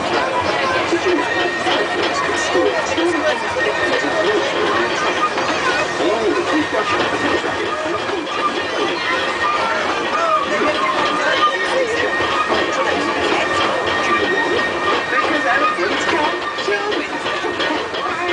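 A small ride train rumbles steadily along its track.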